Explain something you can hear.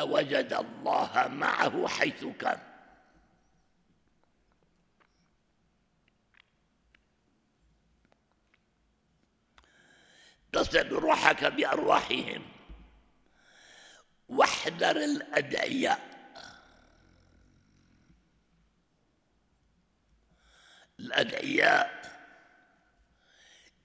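An elderly man speaks slowly and earnestly into a microphone, pausing between phrases.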